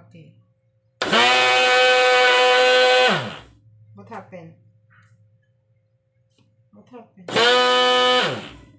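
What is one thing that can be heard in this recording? A blender whirs loudly in short bursts.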